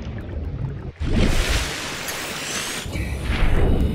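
Water splashes loudly as a swimmer breaks the surface.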